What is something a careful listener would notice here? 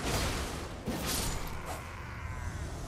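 A sword slashes and strikes with sharp, ringing hits.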